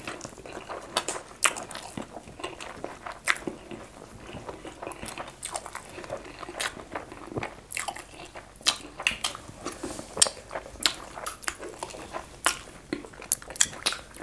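A man and a woman chew and smack their lips loudly, close up.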